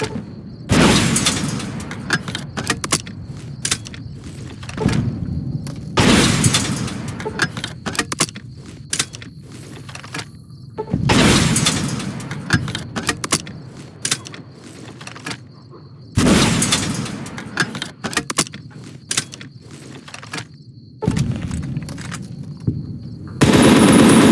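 A rocket launcher fires with a loud blast that booms and echoes.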